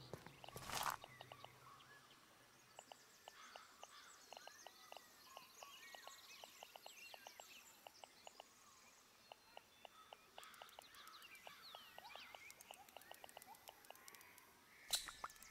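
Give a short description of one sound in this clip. Soft menu clicks tick again and again.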